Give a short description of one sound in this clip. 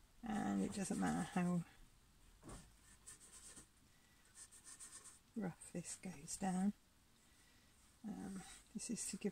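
A paintbrush dabs softly on a canvas.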